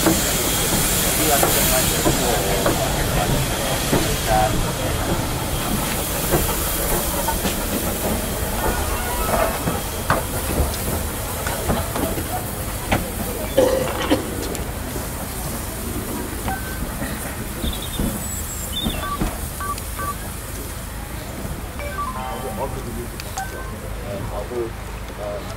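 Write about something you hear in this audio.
A steam locomotive hisses loudly as steam vents from it.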